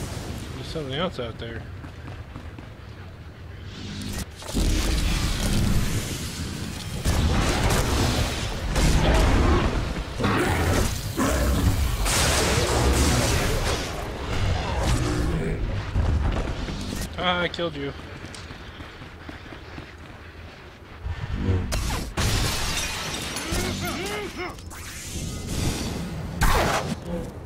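Blows and impacts thud during a fight.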